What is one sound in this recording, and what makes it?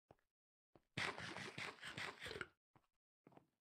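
Crunchy munching sounds of a game character eating.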